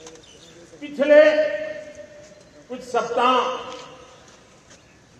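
An elderly man speaks slowly and firmly through a microphone and loudspeakers outdoors.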